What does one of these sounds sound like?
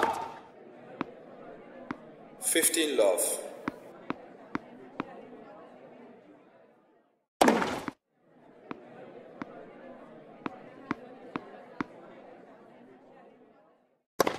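A tennis ball bounces again and again on a hard court.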